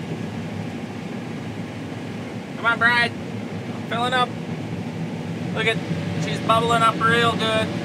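A combine engine rumbles steadily from inside the cab.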